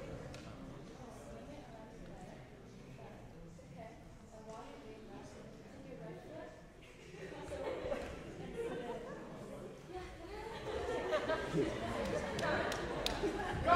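A young man speaks into a microphone, heard through loudspeakers in a large hall.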